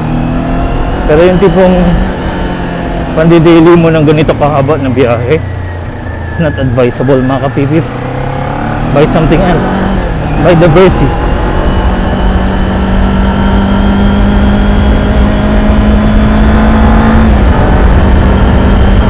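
A parallel-twin sport motorcycle engine hums while cruising at speed.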